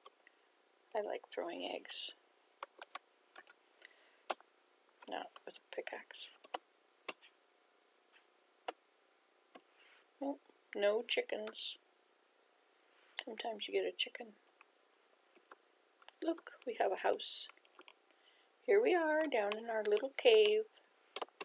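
An elderly woman speaks calmly, close to a microphone, in short phrases.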